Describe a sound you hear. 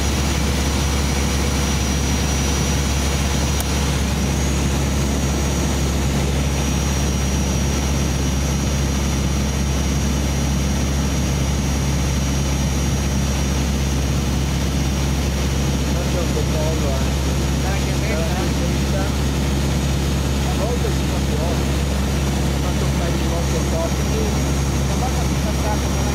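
An aircraft engine drones steadily and loudly from inside the cabin.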